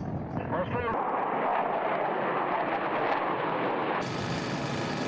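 Military helicopters fly overhead.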